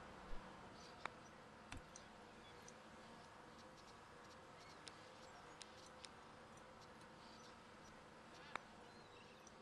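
Short game menu clicks sound as panels open and close.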